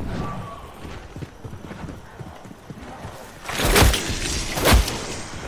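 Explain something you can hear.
Footsteps thud quickly on hard stone.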